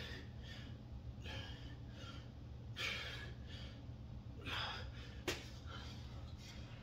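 A man breathes hard with each push-up.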